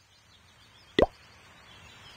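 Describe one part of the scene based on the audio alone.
A game menu opens with a short click.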